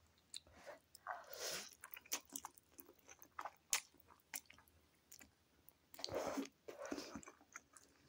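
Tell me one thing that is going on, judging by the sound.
A woman slurps noodles up close.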